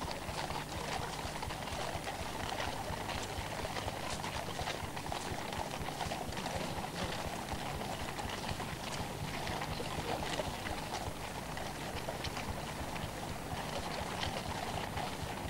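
Carriage wheels rumble and creak.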